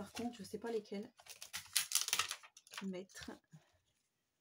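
A plastic sheet crinkles and rustles.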